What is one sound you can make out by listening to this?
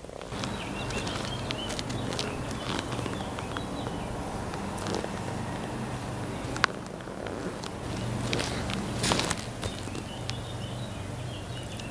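Shoes scuff and tap on stone close by.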